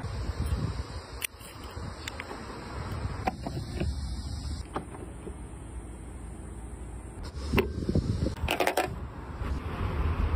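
A key fob button clicks.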